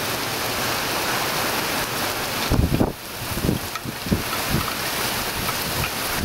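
Strong wind gusts roar against the microphone and through trees.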